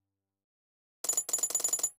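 Game coins jingle and clink rapidly as they pour in.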